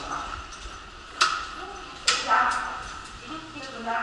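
Metal elevator doors slide shut.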